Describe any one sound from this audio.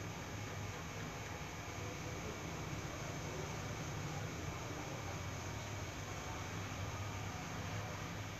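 A pen scratches softly on paper.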